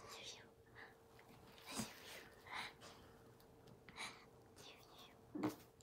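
A toddler giggles and squeals close by.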